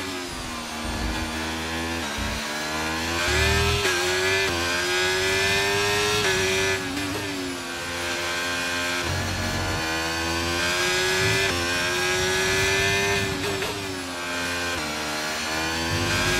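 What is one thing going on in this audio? A racing car engine whines loudly, rising in pitch through the gears and dropping sharply at each shift.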